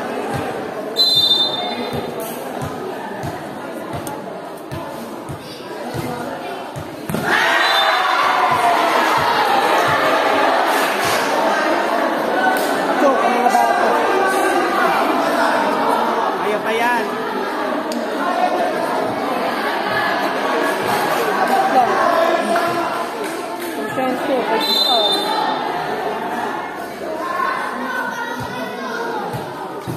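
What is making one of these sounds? A crowd of spectators cheers and shouts loudly in a large echoing court.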